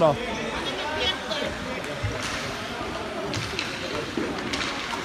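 Young children's voices call out across a large echoing ice rink.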